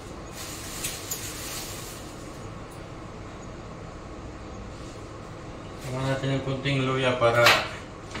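Dishes clink and rattle at a sink.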